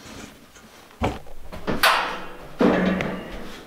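A thin metal panel rattles as it is carried.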